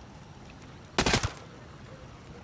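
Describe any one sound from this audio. A rifle fires a quick burst of loud shots.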